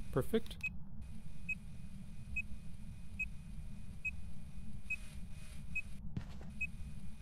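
A handheld electronic device beeps steadily at an even pace.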